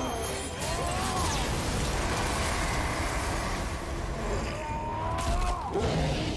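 A beast growls and roars loudly.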